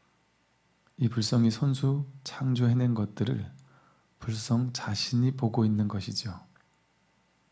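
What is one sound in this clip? A man chants in a low, steady voice.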